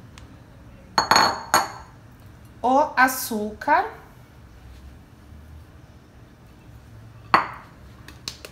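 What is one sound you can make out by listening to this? A ceramic bowl knocks against a counter.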